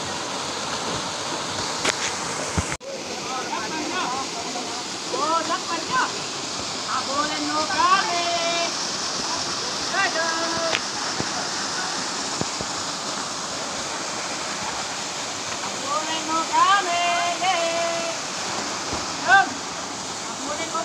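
A waterfall splashes into a pool.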